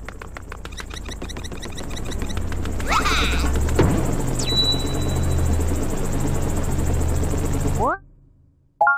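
A game airship's engine rumbles loudly and steadily.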